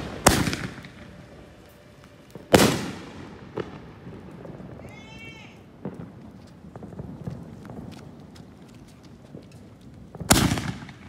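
Fireworks crackle and pop.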